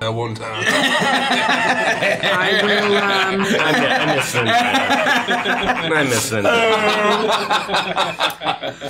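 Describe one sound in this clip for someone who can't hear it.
Several young men and women laugh loudly together over an online call.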